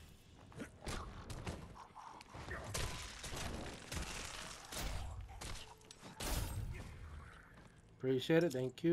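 Heavy blows thud and squelch into flesh.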